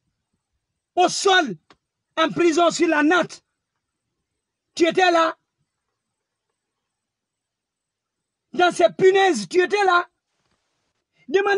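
A man speaks with animation close to the microphone, in short bursts with pauses.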